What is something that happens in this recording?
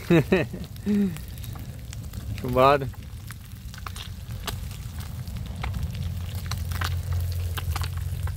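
A gas stove burner hisses steadily under a pan.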